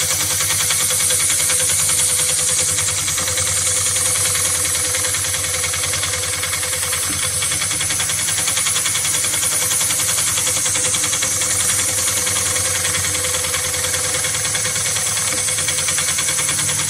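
A sewing machine stitches with a fast, steady rattle.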